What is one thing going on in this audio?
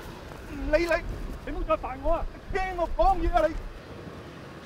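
A young man shouts angrily outdoors.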